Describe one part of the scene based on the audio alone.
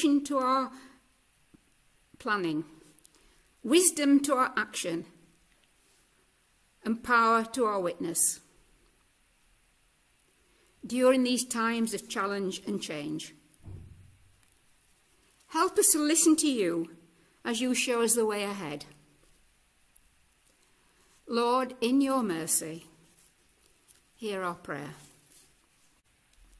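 An elderly woman speaks slowly and calmly into a microphone, with pauses between phrases.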